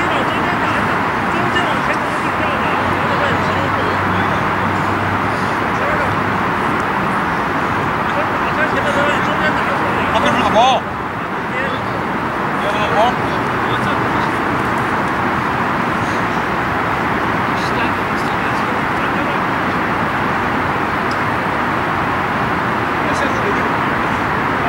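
Young men call out to each other at a distance outdoors.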